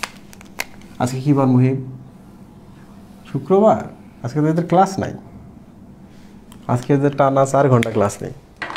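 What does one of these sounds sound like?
A man speaks calmly and clearly, close by, as if teaching.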